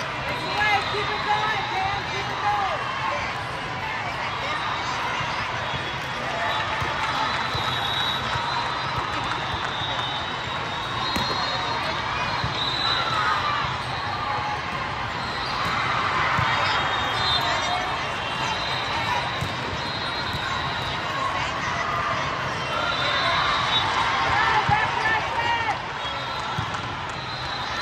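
Young women players and spectators shout and chatter in a large echoing hall.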